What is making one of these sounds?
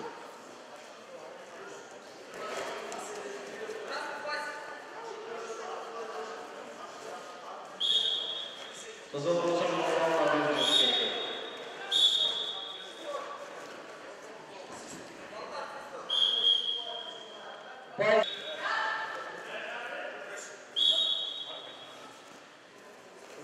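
A crowd of spectators talks and shouts in an echoing hall.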